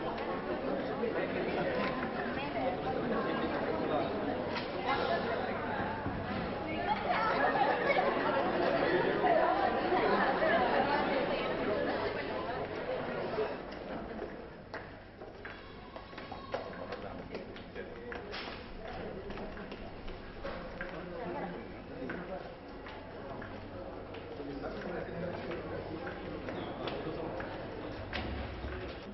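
A crowd of men and women chatter and murmur close by.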